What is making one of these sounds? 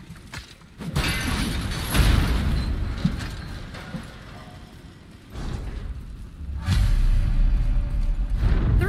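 A heavy stone mechanism rumbles and grinds.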